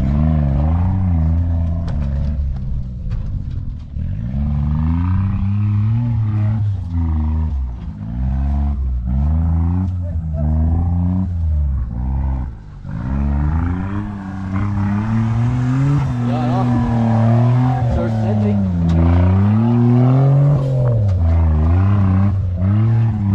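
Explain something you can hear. An off-road vehicle's engine revs and roars, rising and falling in pitch.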